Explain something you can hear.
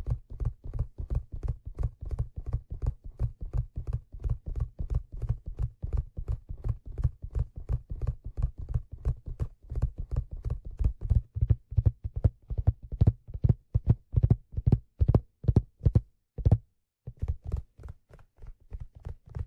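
Fingertips tap quickly and steadily on leather, very close to a microphone.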